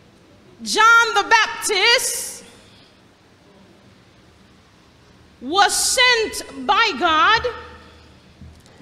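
A woman sings with feeling into a microphone, heard through a loudspeaker in an echoing hall.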